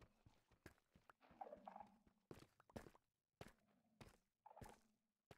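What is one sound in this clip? Footsteps tap on stone in a quick, uneven rhythm.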